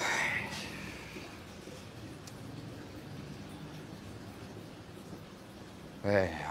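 A young man speaks quietly into a phone.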